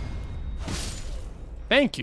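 A blade slashes through flesh with a wet thud.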